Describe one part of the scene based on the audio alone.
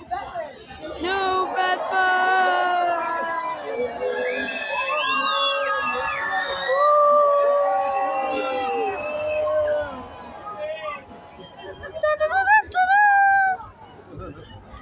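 Men and women in a crowd cheer and shout with excitement.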